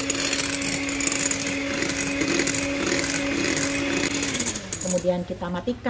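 An electric hand mixer whirs steadily, then winds down.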